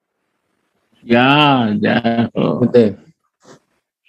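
An elderly man speaks with animation over an online call.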